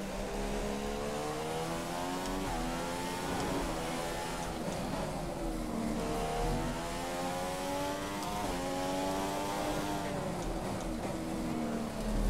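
A racing car engine whines loudly, rising in pitch as it speeds up and dropping sharply with each gear change.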